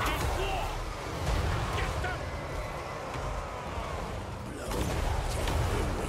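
A battle rumbles.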